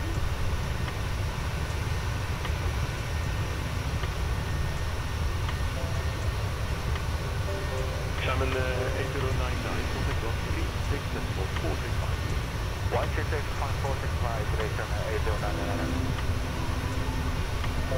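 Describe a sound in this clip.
Jet engines drone steadily in a deep, low roar.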